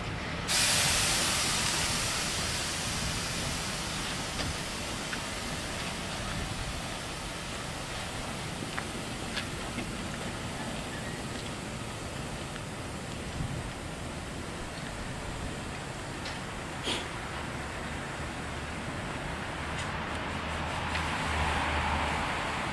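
Train wheels clank and squeal on the rails.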